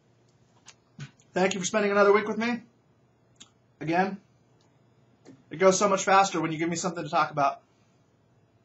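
A middle-aged man talks calmly and close to a microphone, in short bursts.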